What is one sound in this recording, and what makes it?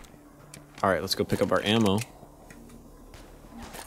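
A pistol is reloaded with a metallic click.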